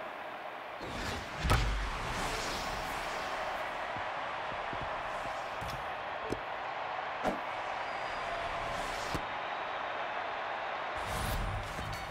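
A crowd cheers in a stadium.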